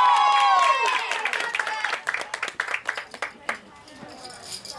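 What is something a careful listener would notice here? An audience claps its hands.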